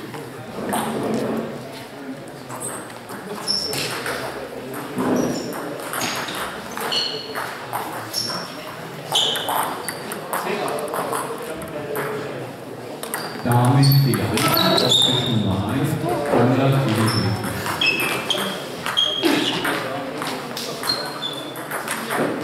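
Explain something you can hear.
Table tennis balls click and bounce on tables in a large echoing hall.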